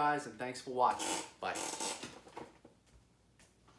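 A chair creaks and rustles as a man stands up.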